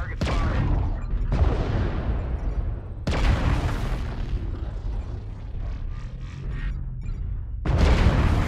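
A mech engine hums low and steady.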